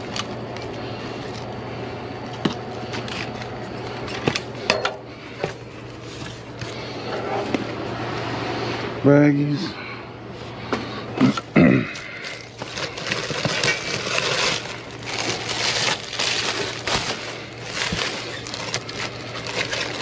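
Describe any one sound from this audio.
Cardboard and plastic packaging rustle and crinkle as they are rummaged through.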